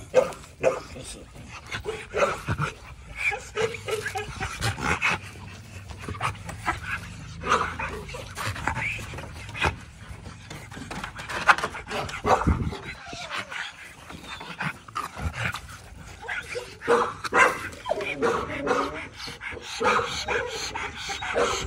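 A dog pants heavily and close by.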